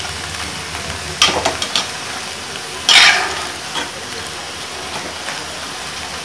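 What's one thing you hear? Greens sizzle softly in a hot pan.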